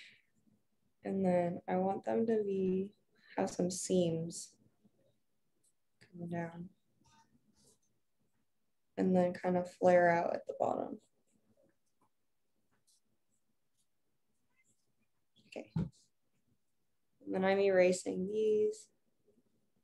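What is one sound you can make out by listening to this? A young woman talks calmly over an online call, in short bursts with pauses.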